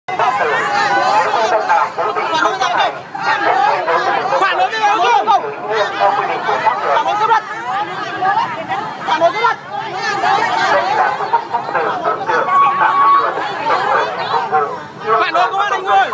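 A crowd of men and women chant and shout loudly nearby, outdoors.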